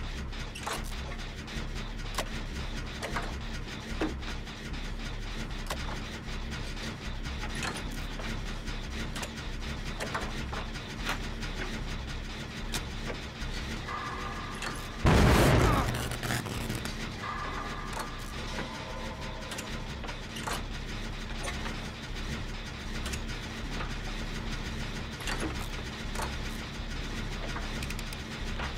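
Metal parts clink and rattle as a machine is being repaired.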